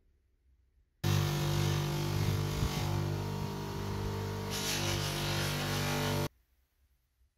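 A bench polishing wheel hums loudly as metal is pressed against it.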